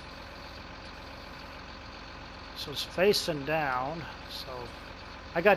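A heavy machine's diesel engine idles with a low, steady hum.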